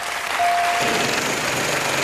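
A bright chime rings.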